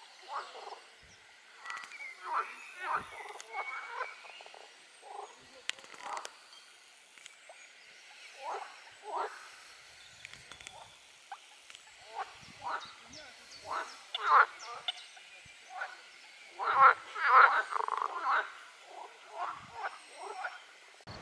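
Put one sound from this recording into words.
Ducklings peep repeatedly on the water.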